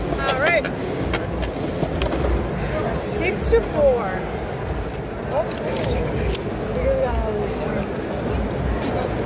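A crowd chatters in a large, busy hall.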